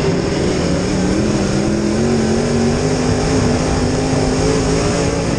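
A race car engine roars loudly and steadily from close by, its pitch slowly rising.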